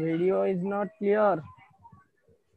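A young man speaks loudly and drawn out into a phone microphone.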